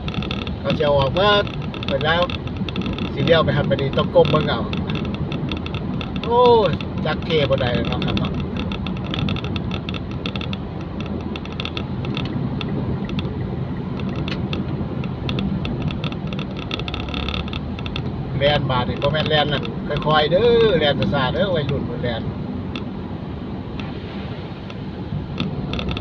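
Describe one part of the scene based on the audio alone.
A car engine hums under way, heard from inside the car.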